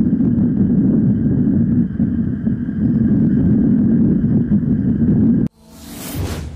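Bicycle tyres roll over a paved road.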